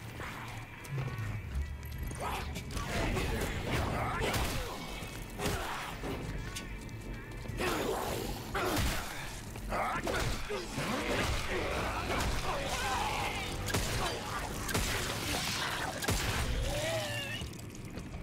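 A young woman talks with animation into a close microphone.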